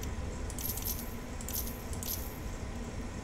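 Soft interface clicks tick briefly.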